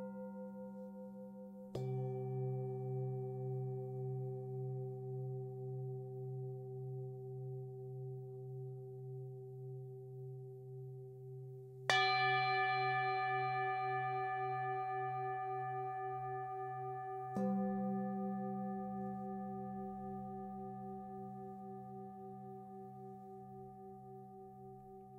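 Singing bowls hum and shimmer steadily with a gentle wavering pulse.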